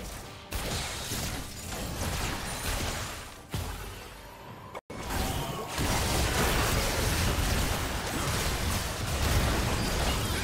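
Video game spells blast and crackle during a fight.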